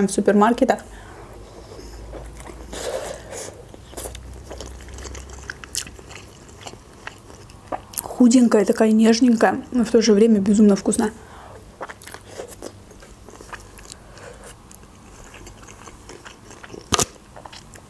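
A young woman chews and slurps food with wet mouth sounds.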